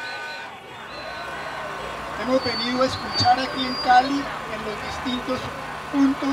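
A man speaks through a microphone to a crowd.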